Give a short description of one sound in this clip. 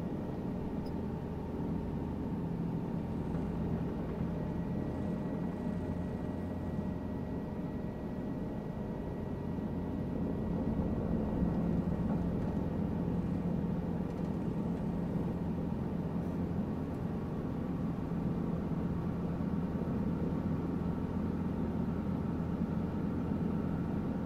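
A small plane's propeller engine drones steadily from inside the cabin.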